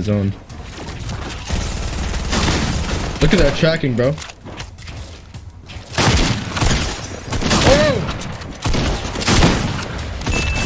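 Video game gunfire cracks in quick bursts.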